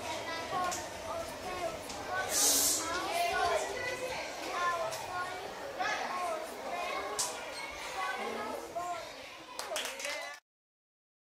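A young child recites loudly and steadily.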